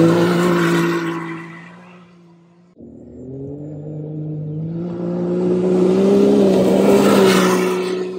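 Tyres spray dirt and gravel.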